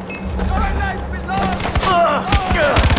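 A man shouts loudly nearby.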